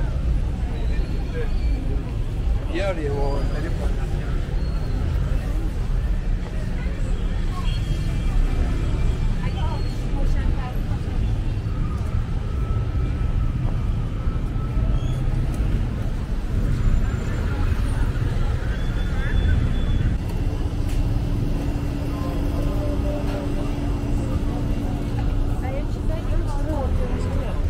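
A busy street crowd murmurs.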